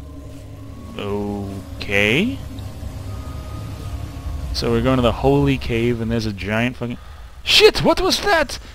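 A man speaks with animation, close to a headset microphone.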